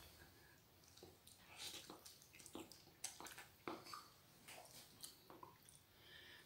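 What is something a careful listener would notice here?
A woman slurps noodles close by.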